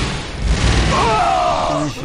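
Blaster shots fire with sharp zaps.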